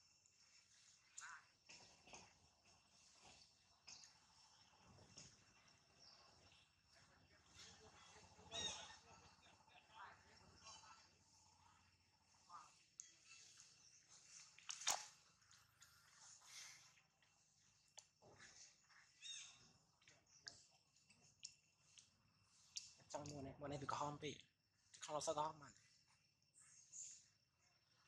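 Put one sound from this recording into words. A monkey chews and gnaws on an ear of corn.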